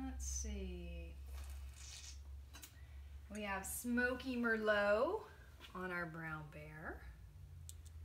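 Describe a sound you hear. A woman speaks calmly and clearly close by.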